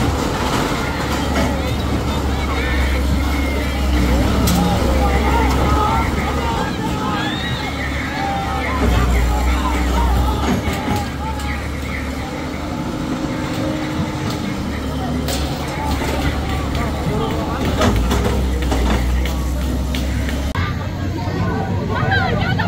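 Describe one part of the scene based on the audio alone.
A crowd of men and women talk and shout loudly outdoors.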